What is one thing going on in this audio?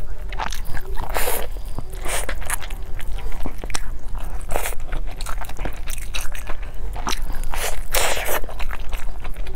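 Crusty bread crackles as a woman tears and squeezes it.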